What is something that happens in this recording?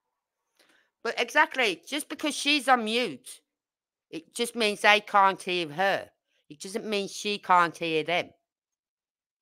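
A woman talks with animation through a microphone.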